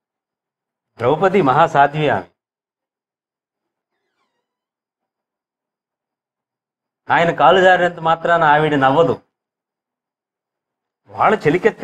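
A man speaks clearly into a microphone, in short phrases with pauses.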